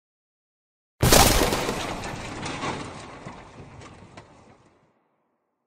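Heavy blocks crash down and clatter, slowly fading away.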